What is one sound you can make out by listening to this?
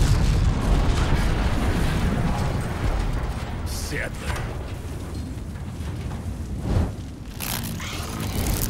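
A fire roars with a deep, loud rumble that slowly eases.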